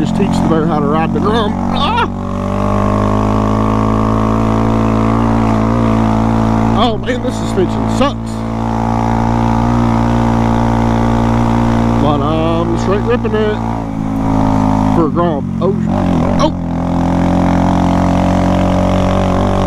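A motorcycle engine hums steadily and revs up and down now and then.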